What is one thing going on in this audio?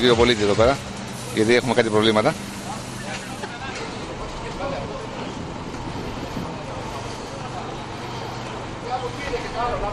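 Voices of a crowd murmur in the background.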